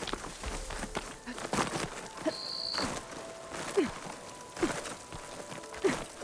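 Hands and feet scrape and knock on rock while climbing.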